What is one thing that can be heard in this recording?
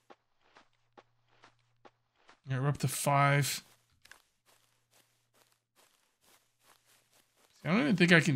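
Footsteps crunch steadily on sandy ground.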